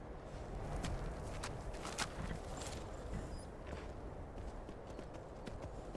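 A horse's hooves thud on snow.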